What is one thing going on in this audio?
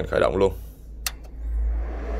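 A button clicks once.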